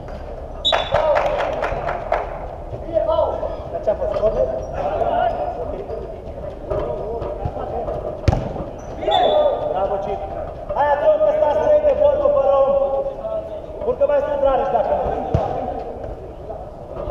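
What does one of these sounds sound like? Men shout to each other across a football pitch inside a large echoing dome.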